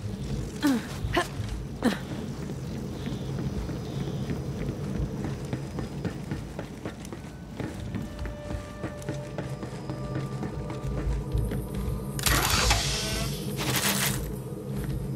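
Footsteps clang on metal grating.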